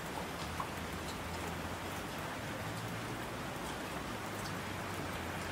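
Streams of water rush down the slopes.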